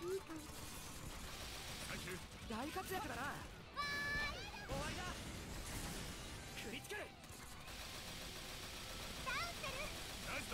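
Gunshots fire rapidly in a game.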